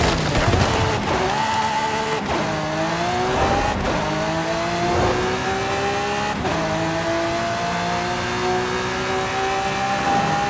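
A sports car engine revs up through quick gear changes.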